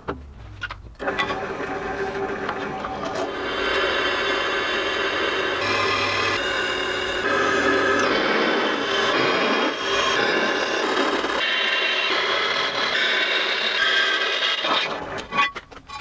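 A drill press whirs as it bores through a steel plate.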